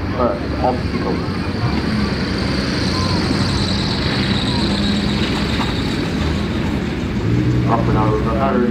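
A large truck engine rumbles as it drives slowly over rough ground.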